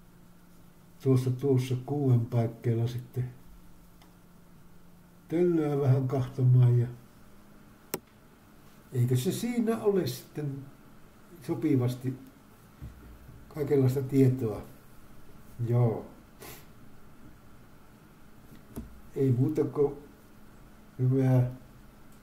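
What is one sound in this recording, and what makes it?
An elderly man speaks calmly in short phrases, close to a microphone, with pauses between them.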